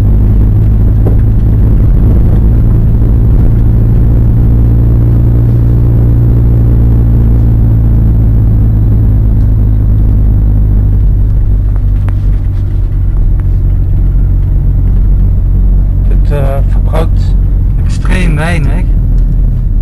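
A vehicle engine rumbles steadily inside a car.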